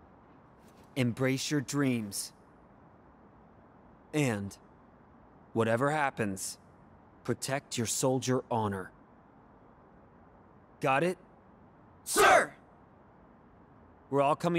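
A young man speaks calmly and firmly, close by.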